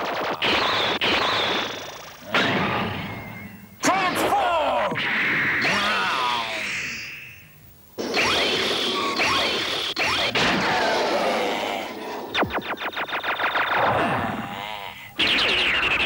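Jet engines roar as a robot flies.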